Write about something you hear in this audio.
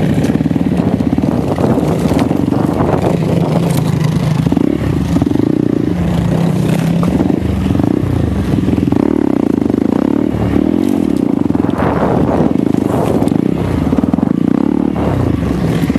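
A single-cylinder four-stroke dual-sport motorcycle engine chugs and revs on a dirt trail.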